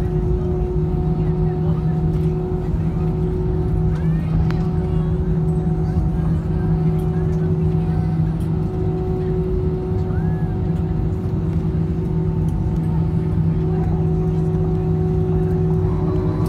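Jet engines hum and whine steadily, heard from inside an aircraft cabin.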